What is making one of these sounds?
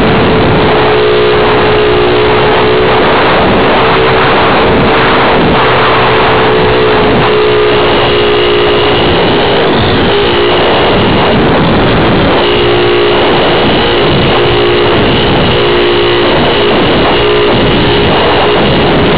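Small drone motors whine steadily, rising and falling in pitch as it flies.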